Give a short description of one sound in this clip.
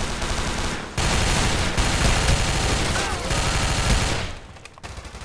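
Rapid gunfire rattles from a rifle close by.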